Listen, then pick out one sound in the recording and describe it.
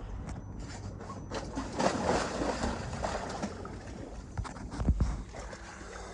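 A diver splashes into the water.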